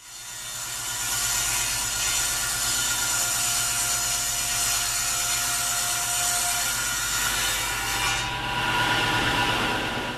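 A table saw blade cuts through wood.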